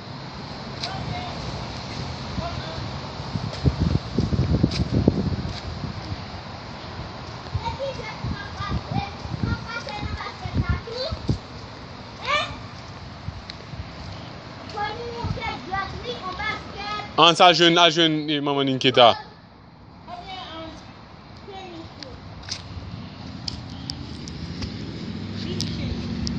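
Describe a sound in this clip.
A young boy talks and calls out nearby.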